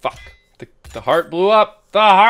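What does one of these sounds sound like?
A bright video game jingle rings out for an unlock.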